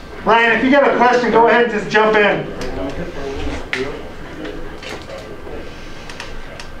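A man speaks nearby, explaining calmly.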